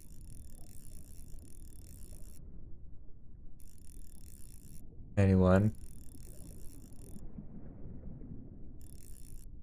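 A low underwater rumble goes on steadily.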